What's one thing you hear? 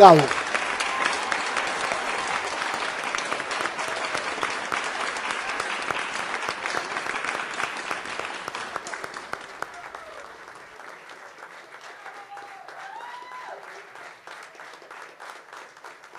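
An audience applauds in a large hall, slowly dying down.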